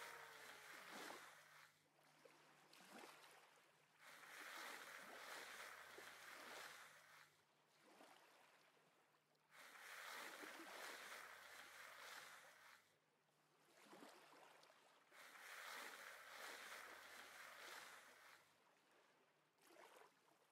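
Soft knocks of stone blocks being placed and broken sound now and then.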